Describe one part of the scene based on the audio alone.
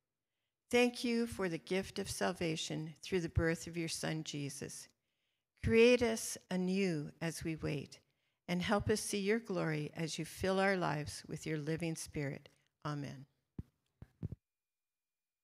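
An older woman reads aloud calmly through a microphone.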